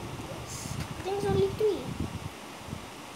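A boy speaks quietly and slowly, close by.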